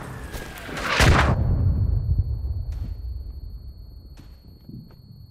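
An explosion booms close by and rumbles away.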